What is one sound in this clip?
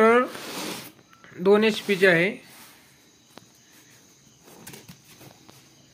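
Hands shift a cardboard box, which scrapes and taps.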